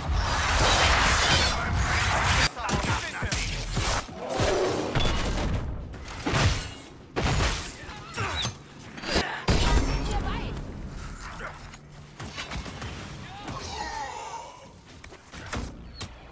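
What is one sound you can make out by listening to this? Weapons clash and strike in a fast fight.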